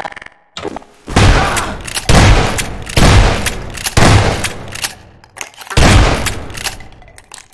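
A shotgun fires loud blasts in quick succession.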